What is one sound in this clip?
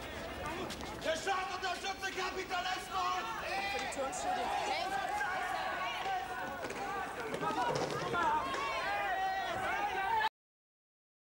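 A crowd of protesters shouts and chants loudly outdoors.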